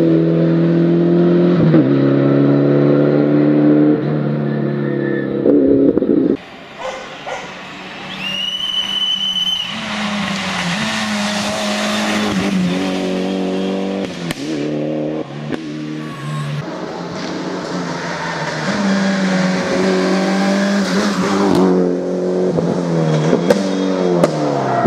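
A rally car engine roars close by, revving hard and dropping through gear changes.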